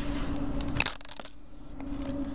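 Plastic film crinkles and rustles as it is peeled off.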